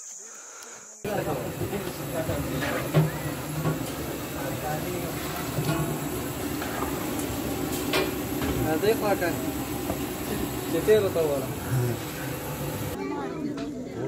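Hot oil sizzles and bubbles in a large pan.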